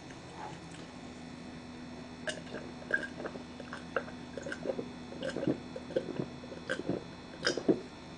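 A young man gulps down a drink.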